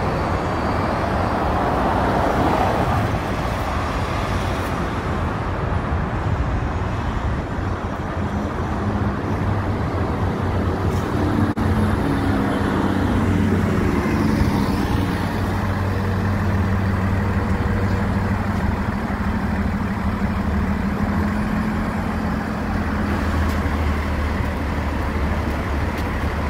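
Traffic rumbles steadily on a nearby road.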